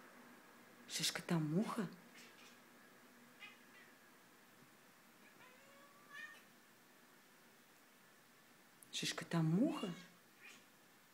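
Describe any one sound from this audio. A cat meows loudly close by.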